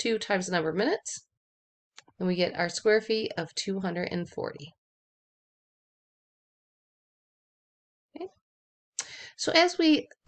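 A woman explains calmly into a microphone, with pauses.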